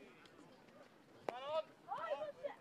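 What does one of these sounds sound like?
A stick strikes a ball with a sharp crack.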